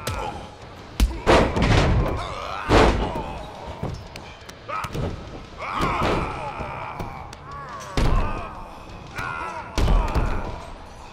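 Heavy bodies slam down onto a wrestling mat with loud thuds.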